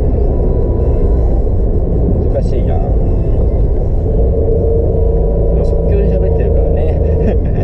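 A car engine hums steadily with road rumble inside the cabin.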